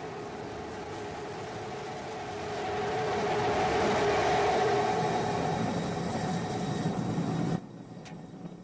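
A rocket engine roars loudly.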